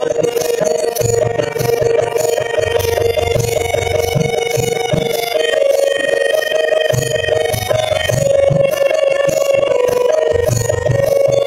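Women sing a devotional song together through a microphone and loudspeaker.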